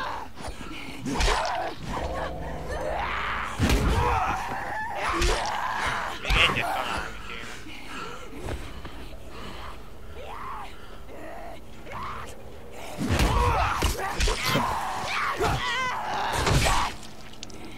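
A heavy weapon thuds into a body with hard blows.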